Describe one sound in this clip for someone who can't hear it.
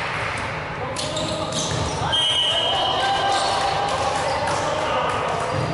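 Balls thud and smack in a large echoing hall.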